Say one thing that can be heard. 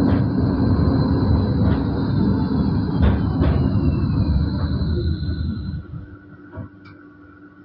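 A tram rumbles along its rails, slowing down.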